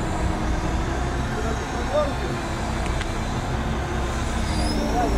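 A hydraulic crane whines as it swings a load of logs.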